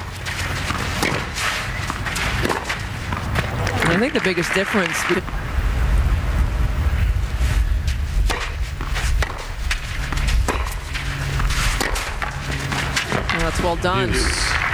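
A tennis ball is struck hard with a racket, again and again.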